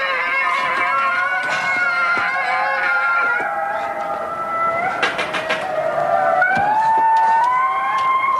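Music plays from a television across the room.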